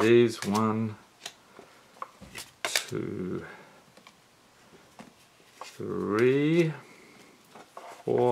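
Cards flick and tap softly as fingers leaf through a stack.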